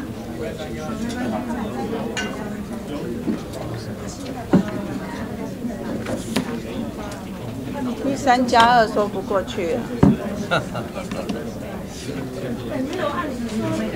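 Many men and women talk at once in a murmur that fills a large room.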